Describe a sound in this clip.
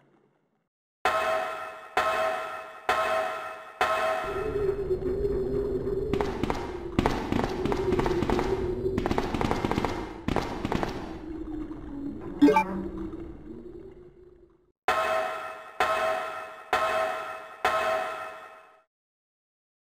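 Footsteps clang on the rungs of a metal ladder in a steady rhythm.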